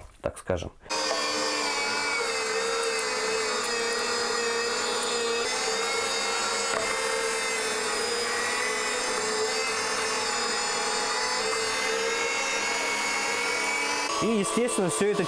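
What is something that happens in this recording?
An electric meat grinder hums steadily as it runs.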